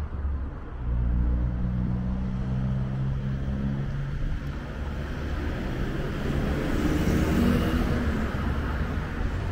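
A vehicle engine hums nearby on a street.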